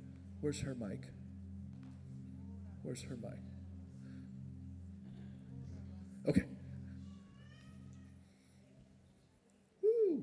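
A keyboard plays soft sustained chords.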